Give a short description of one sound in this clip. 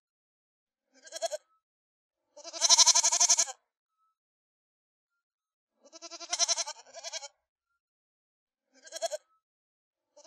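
Young goats bleat in short, high cries, again and again.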